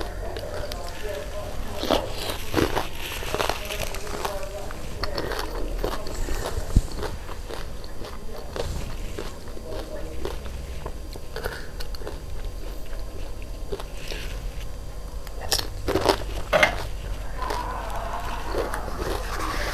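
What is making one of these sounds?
A woman chews and crunches crisp puri shells close to the microphone.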